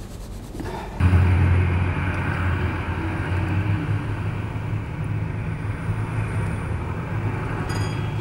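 A vibrating platform machine hums steadily.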